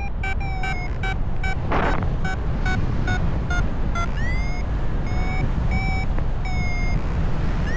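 Wind rushes loudly past in flight.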